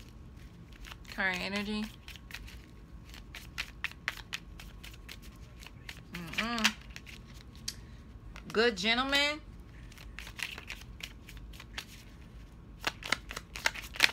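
Cards rustle and tap softly as a hand shuffles and lays them down.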